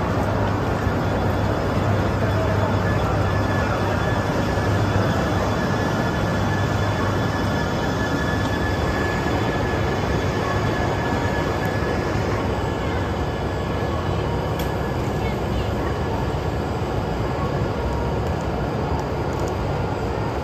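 A train rolls slowly past with a low, steady hum.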